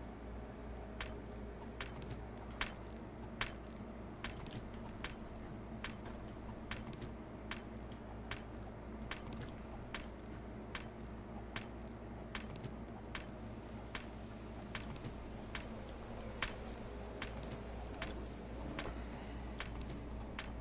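A tool repeatedly strikes stone with sharp knocks.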